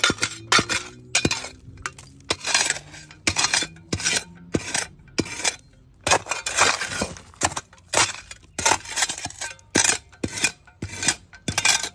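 A metal trowel scrapes through dry, crumbly soil.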